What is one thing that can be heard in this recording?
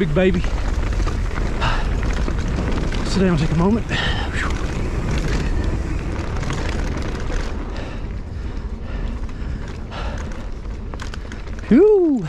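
Bicycle tyres roll and crunch over a dirt trail.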